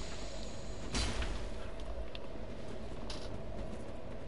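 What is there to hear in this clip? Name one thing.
A sword clangs against a shield.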